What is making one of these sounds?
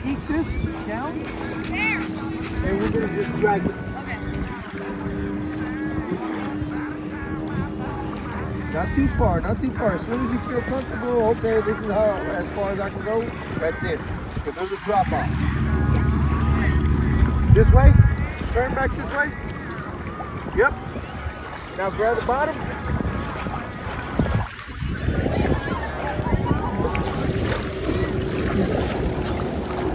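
Wind blows across a microphone in gusts.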